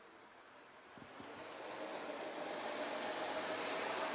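A car engine hums as the car approaches.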